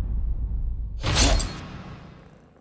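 Metal blades swish and ring sharply.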